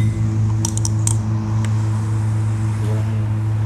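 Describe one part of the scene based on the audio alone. A man cracks and picks at seafood shells with his fingers.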